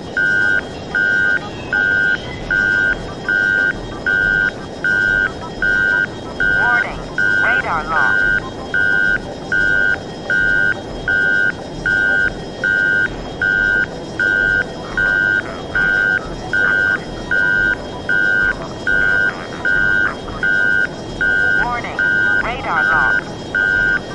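A cockpit targeting tone beeps in even pulses.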